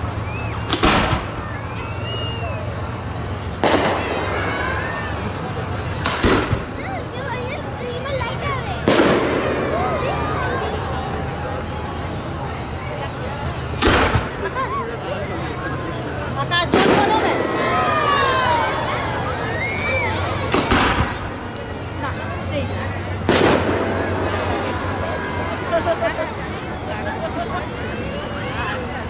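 Fireworks crackle and whistle after the bursts.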